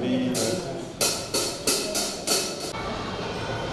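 A boy plays a drum kit.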